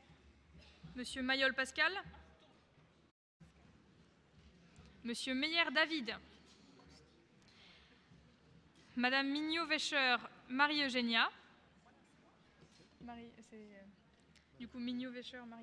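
A man speaks in short bursts through a microphone in a large hall.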